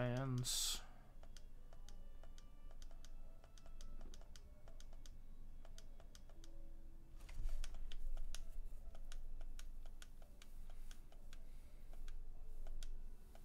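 Short blips tick quickly as game text scrolls.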